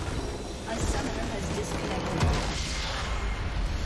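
A crystal structure explodes in a computer game.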